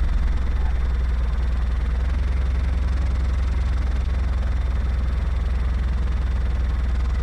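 A small propeller plane's engine drones steadily with a low, throbbing hum.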